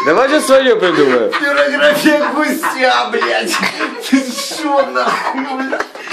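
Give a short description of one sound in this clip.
A young man laughs and cries out close by.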